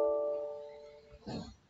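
A computer alert chime sounds and fades.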